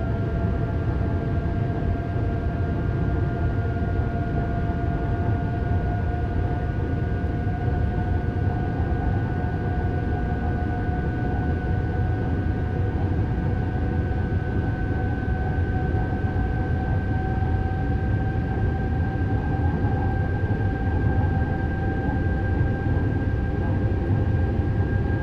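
A train rumbles steadily through a tunnel, its motor whining higher as it speeds up.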